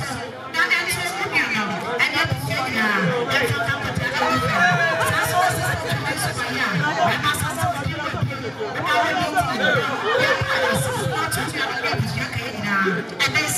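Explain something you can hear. Men talk and greet each other warmly, close by.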